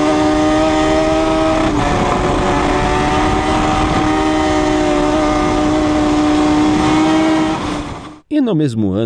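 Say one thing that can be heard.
A racing motorcycle engine roars at high speed.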